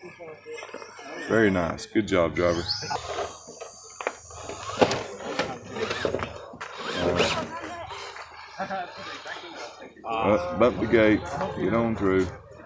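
A small electric motor whines as a toy car crawls over rocks.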